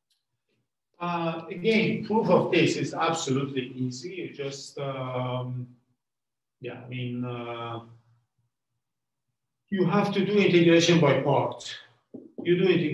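An elderly man speaks calmly in a lecture, heard close by.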